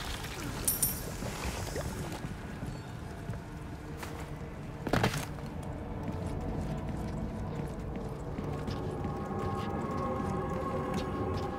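Footsteps crunch slowly over stone and gravel.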